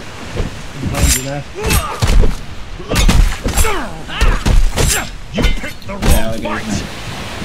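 Heavy blows land with sharp, thudding hits.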